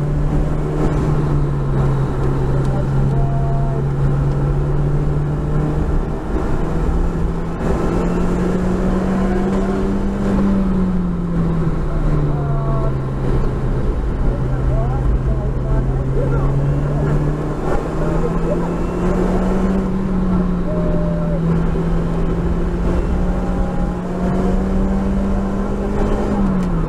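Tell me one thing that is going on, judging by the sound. A race car engine drones loudly inside the cabin, its pitch rising and falling as the car speeds up and slows down.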